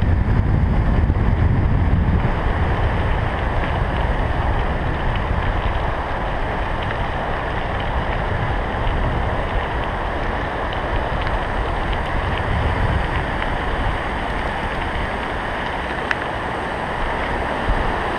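Wind rushes steadily against a moving bike rider.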